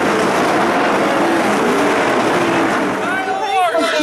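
A race car engine roars as the car speeds around a dirt track.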